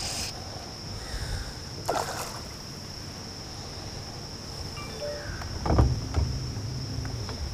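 A fishing line swishes through the air as it is cast.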